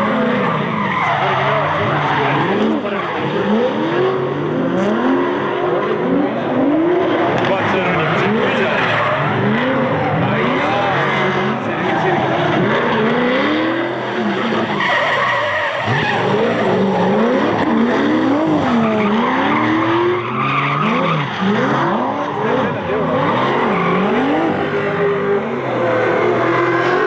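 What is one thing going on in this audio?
Tyres squeal on wet tarmac as cars slide.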